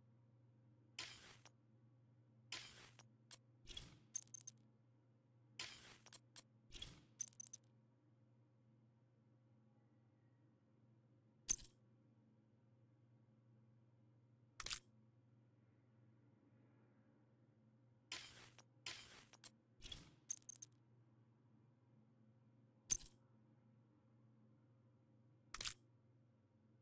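Short menu clicks and swishes sound now and then.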